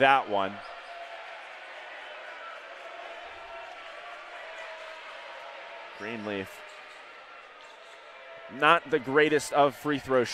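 A crowd murmurs steadily in a large echoing gym.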